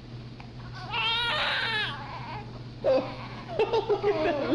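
A newborn baby cries and fusses.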